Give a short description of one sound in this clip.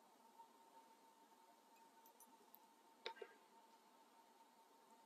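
Liquid trickles softly from a bottle.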